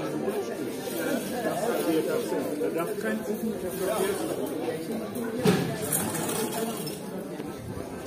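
A crowd of men and women chat outdoors at close range.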